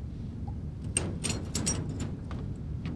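Keys jingle as they are picked up from the floor.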